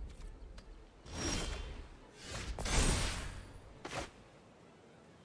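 Digital card game sound effects whoosh and chime.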